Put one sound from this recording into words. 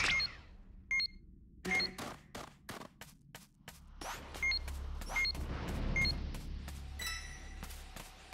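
An electronic device beeps at a steady pace.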